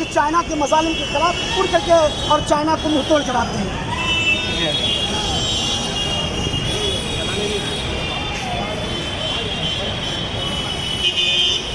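Traffic rumbles steadily on a busy street.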